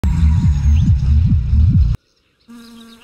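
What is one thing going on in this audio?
A car engine revs loudly.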